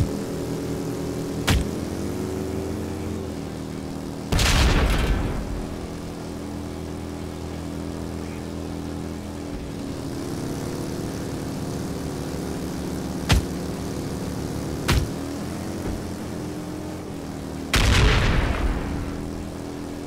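Motorcycle engines roar steadily at speed.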